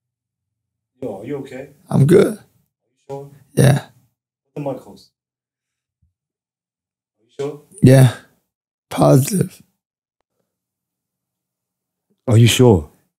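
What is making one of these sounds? A young man speaks close into a microphone in short bursts.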